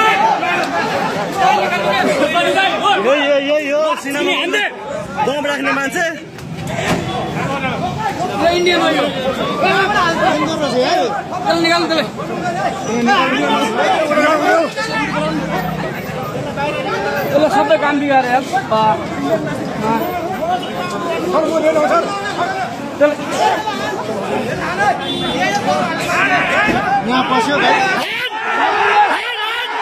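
A crowd of men talks and shouts excitedly close by, outdoors.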